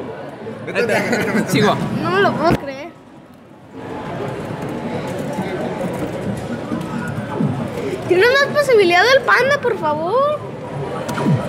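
An arcade claw machine plays a warbling electronic tune.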